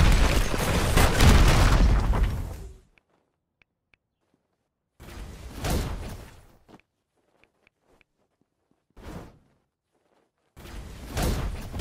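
Combat blows whoosh and crash in short bursts.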